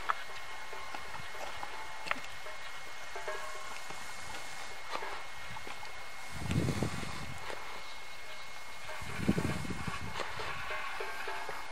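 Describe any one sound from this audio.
Trekking poles tap on stony ground.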